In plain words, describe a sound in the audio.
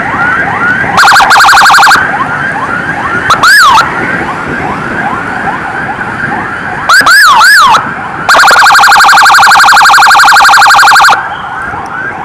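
A horn blares in short, loud bursts.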